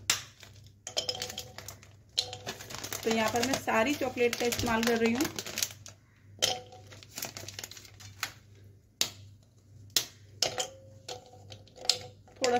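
Pieces of chocolate clink and tap into a glass bowl.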